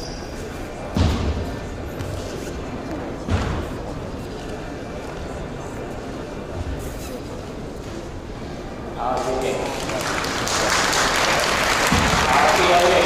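A martial artist's feet stamp on a padded mat in a large echoing hall.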